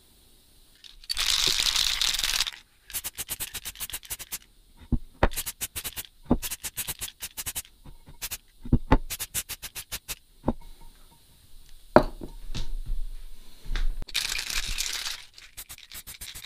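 Spray paint hisses out of a can in short bursts.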